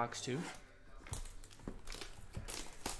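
A plastic card pack wrapper crinkles as hands tear it open.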